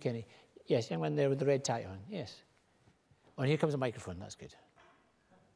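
A middle-aged man speaks with animation into a microphone in a large hall.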